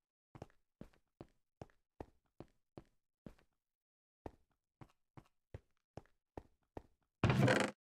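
Footsteps crunch on sand and stone at a steady walking pace.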